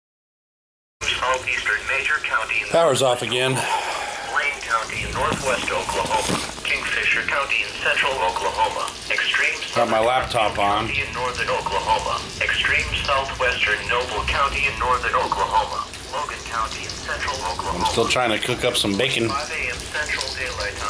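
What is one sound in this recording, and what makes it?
A middle-aged man talks calmly and close by.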